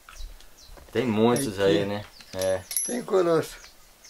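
Metal rings clink softly as a hand moves hanging tack.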